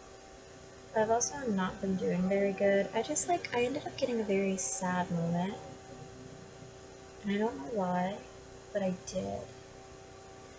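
A young woman talks calmly close to a microphone.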